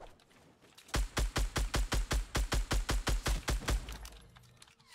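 A rifle fires in a rapid burst of shots.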